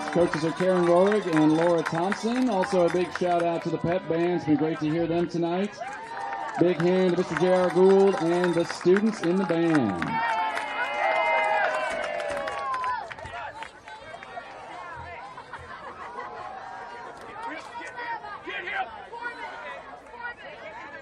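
A crowd of spectators cheers and shouts in the distance outdoors.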